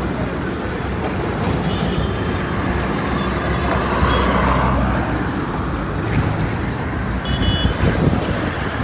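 A truck engine idles nearby with a low rumble.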